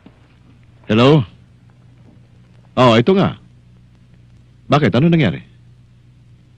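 A man speaks into a phone in short, firm phrases.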